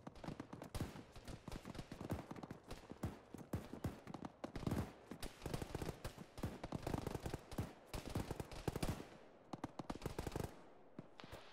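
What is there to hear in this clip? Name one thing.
Quick footsteps run on a hard floor.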